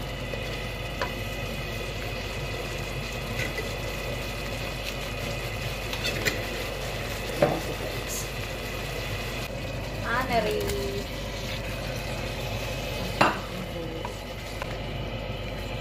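A wooden spoon scrapes and stirs through thick sauce in a pan.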